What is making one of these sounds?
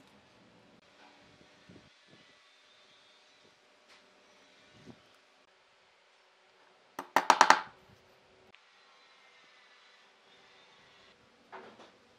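A pencil scratches across wood.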